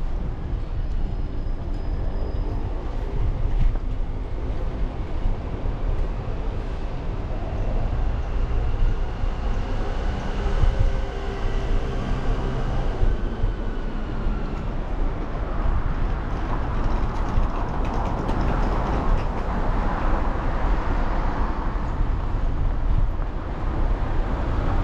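Wind buffets and rumbles close by outdoors.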